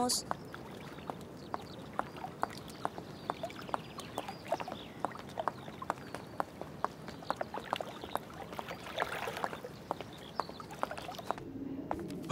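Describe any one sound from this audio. Footsteps tap steadily on a hard stone surface outdoors.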